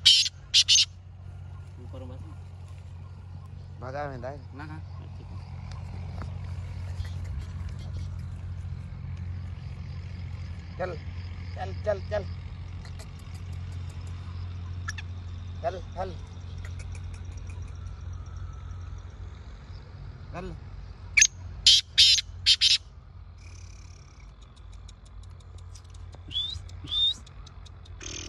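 A partridge calls loudly in short, sharp bursts.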